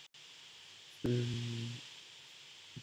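A young man speaks briefly and calmly into a microphone.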